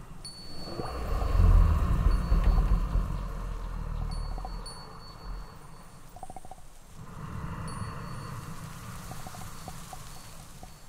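Short electronic blips chirp rapidly, one after another.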